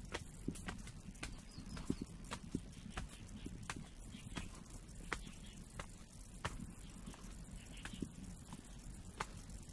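Footsteps tread steadily on stone steps.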